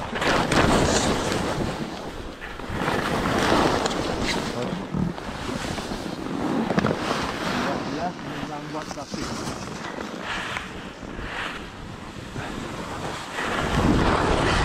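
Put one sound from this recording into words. Ski poles tap and crunch into the snow.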